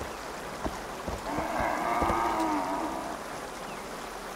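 A horse splashes through shallow water.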